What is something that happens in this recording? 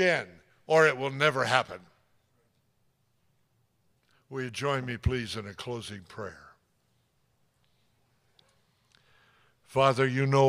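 An elderly man speaks with animation into a microphone, with pauses between phrases.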